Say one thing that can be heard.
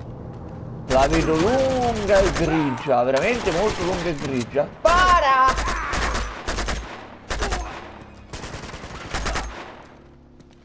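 A rifle fires in bursts of sharp shots.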